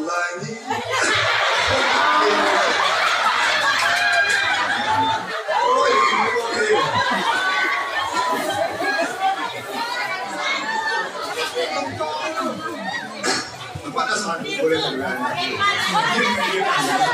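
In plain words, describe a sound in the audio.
A crowd sings along loudly.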